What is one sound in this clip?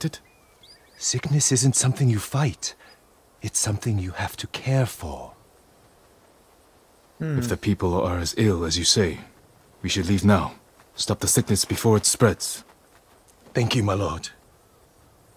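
An older man answers calmly and gently.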